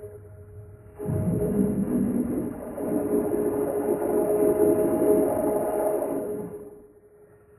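A teenage boy screams, his voice slowed down and vocoded.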